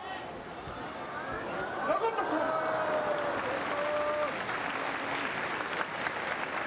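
A large crowd cheers, growing louder.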